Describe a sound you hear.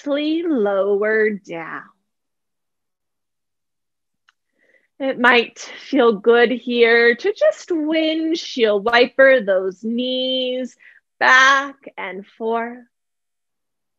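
A woman speaks calmly and clearly into a close microphone, giving slow instructions.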